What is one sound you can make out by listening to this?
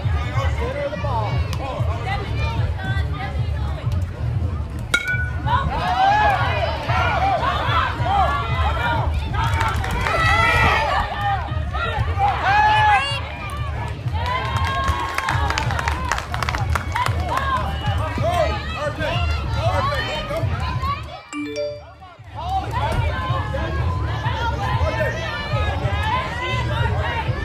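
Children and adults shout and cheer loudly outdoors.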